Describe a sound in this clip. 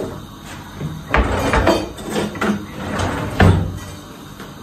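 A drawer rattles and bangs shut.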